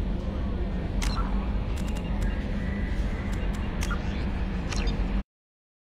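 Short electronic beeps and clicks sound as menu options are chosen.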